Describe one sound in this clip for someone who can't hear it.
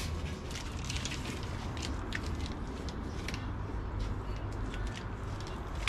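Wires and small parts rustle and click.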